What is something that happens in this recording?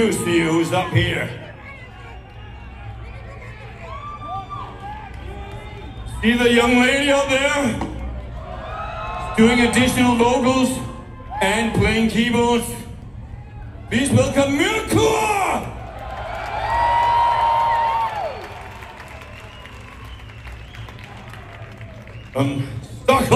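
A rock band plays loudly.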